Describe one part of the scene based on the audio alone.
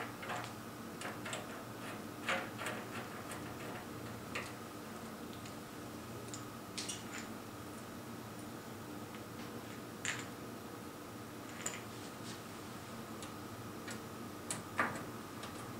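Fingers click and tap against a metal panel.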